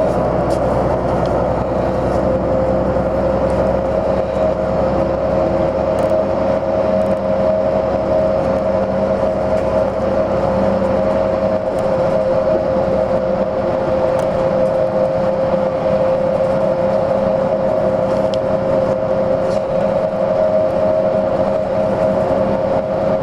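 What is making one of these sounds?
A vehicle's motor drones steadily from inside as it travels.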